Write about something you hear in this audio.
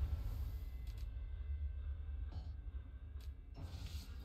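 A soft menu click sounds.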